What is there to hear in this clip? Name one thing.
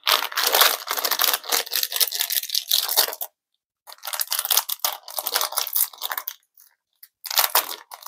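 Plastic packaging crinkles and rustles in someone's hands.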